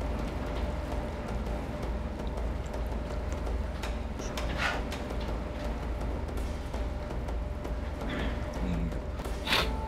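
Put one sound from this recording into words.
A man slurps noodles noisily.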